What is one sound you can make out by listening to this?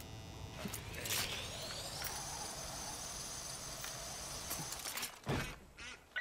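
A zipline pulley whirs and rises in pitch while sliding down a cable.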